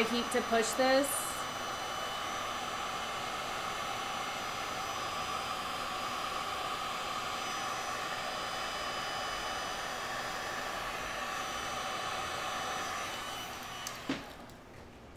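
A heat gun whirs, blowing hot air.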